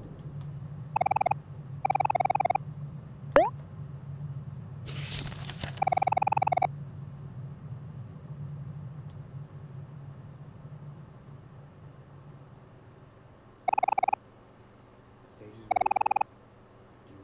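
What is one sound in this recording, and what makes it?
Short electronic beeps chirp in bursts.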